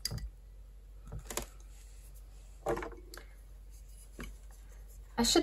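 Brushes clink softly as they are put down and picked up.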